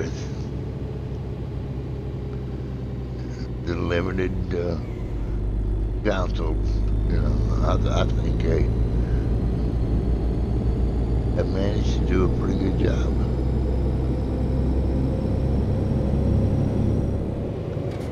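A truck engine rumbles steadily and builds as the truck speeds up.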